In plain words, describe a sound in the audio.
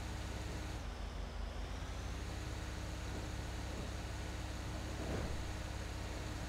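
A heavy truck engine drones steadily as the truck drives along.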